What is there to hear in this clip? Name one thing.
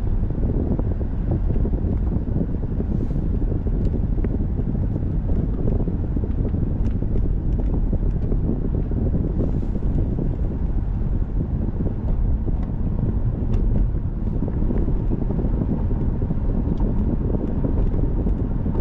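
A car engine hums steadily from inside the car as it drives.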